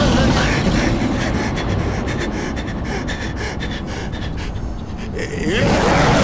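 A young man sobs and wails close by.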